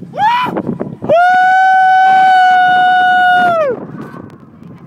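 A man yells loudly and long outdoors.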